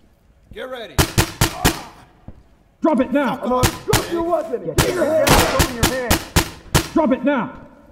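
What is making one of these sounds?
A rifle fires in short rapid bursts, echoing through a tunnel.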